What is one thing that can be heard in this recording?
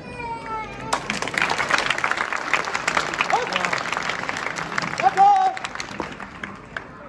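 A large outdoor crowd cheers.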